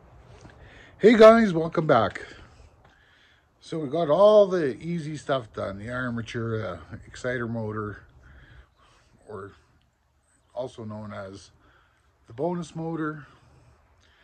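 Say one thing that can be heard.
An older man talks calmly, close by, in pauses.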